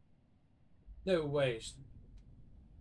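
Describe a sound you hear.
A man gives a short, loud exclamation into a close microphone.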